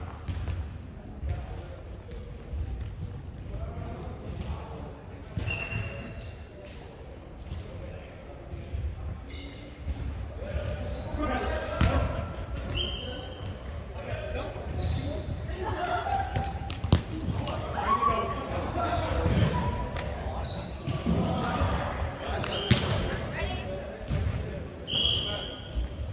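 Young men call out and talk across a large echoing gym.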